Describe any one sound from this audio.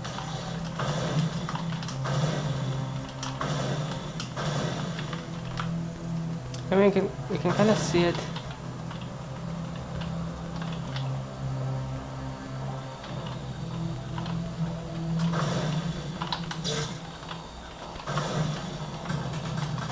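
Game sounds play through small loudspeakers.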